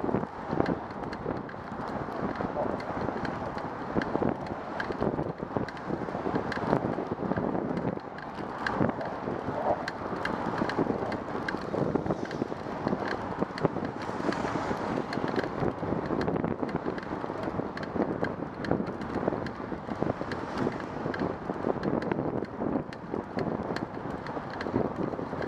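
Tyres hum on a smooth path.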